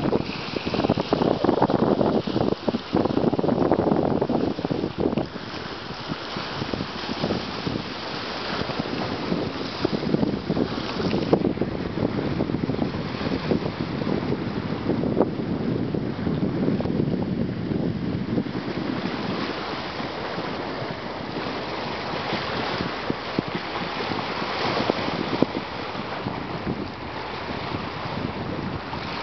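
Choppy waves slap and splash against a stone quay.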